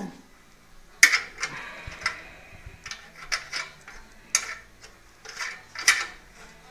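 Metal parts knock and clatter as a hand moves a metal frame.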